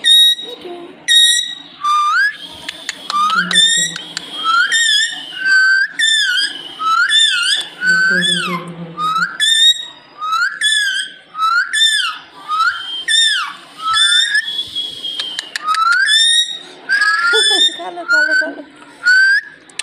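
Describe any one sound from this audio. A parrot screeches loudly and repeatedly close by.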